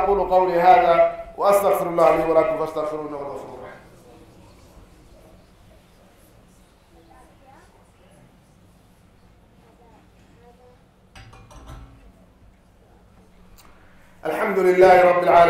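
A man speaks through a microphone, chanting in a melodic, echoing voice.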